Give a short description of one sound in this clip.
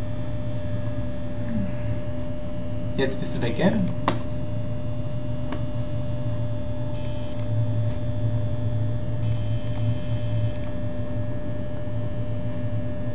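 An electric fan whirs with a steady low hum.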